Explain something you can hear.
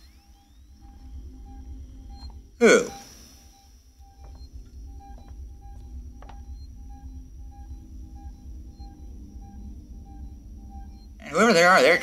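A motion tracker beeps in short, steady pulses.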